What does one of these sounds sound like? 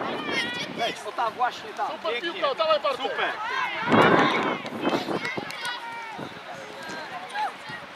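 Young girls shout and call out to each other across an open field.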